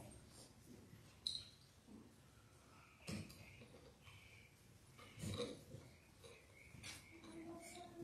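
Cups clink on a ledge.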